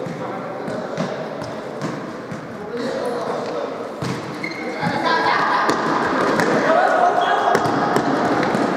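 A ball is kicked and thuds on a hard indoor court.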